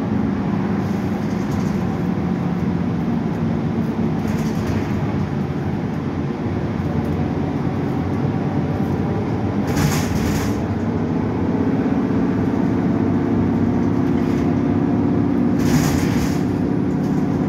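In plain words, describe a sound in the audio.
A bus body rattles over bumps.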